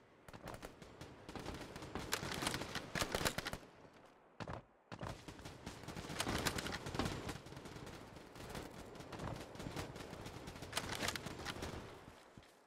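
Boots run on stone paving.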